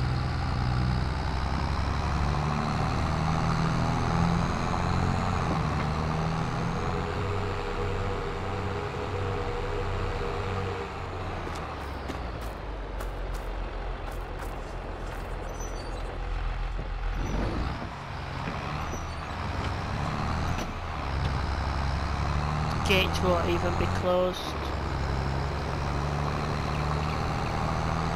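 A tractor engine rumbles steadily, rising and falling as it drives.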